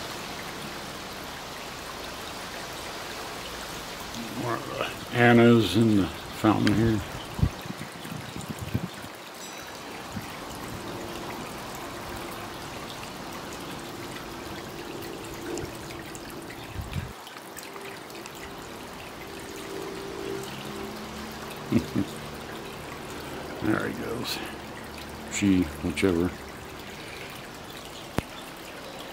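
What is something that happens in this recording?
Water trickles and splashes steadily in a small fountain.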